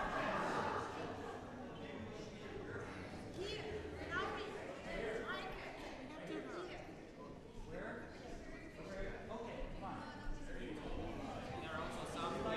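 A crowd of men and women sings together.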